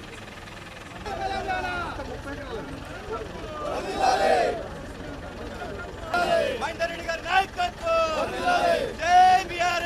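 A crowd of men cheers and shouts outdoors.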